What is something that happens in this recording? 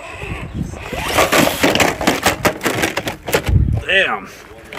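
A toy truck tumbles and clatters against rock.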